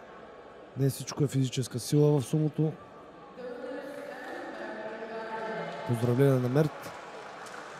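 A man's voice calls out loudly in a large echoing hall.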